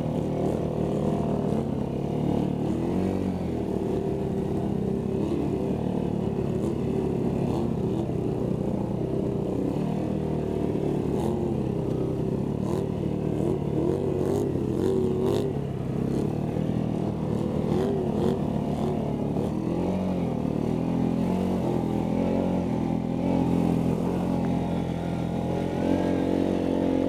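An all-terrain vehicle engine roars and revs close by.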